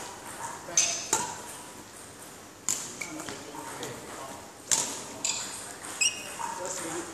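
A racket strikes shuttlecocks with sharp smacks that echo around a large hall.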